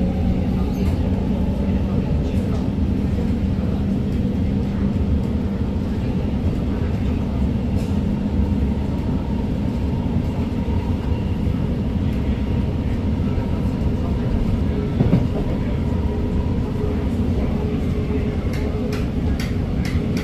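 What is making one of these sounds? A train rumbles and hums steadily along the track.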